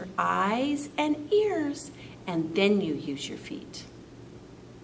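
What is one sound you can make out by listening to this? A woman speaks clearly and calmly close to a microphone.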